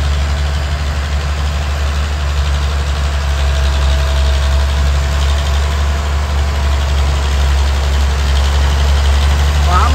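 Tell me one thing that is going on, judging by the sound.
Tractor tyres churn through wet mud.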